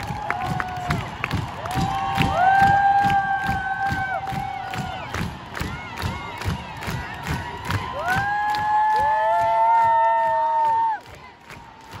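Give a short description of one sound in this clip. Loud pop music with a steady thumping beat plays over loudspeakers in a large open space.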